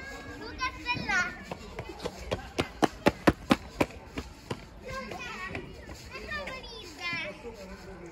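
A young child shouts and chatters nearby.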